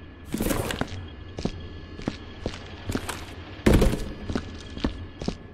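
Footsteps tap on a hard floor at a steady pace.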